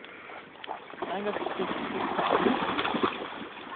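A dog splashes through shallow stream water.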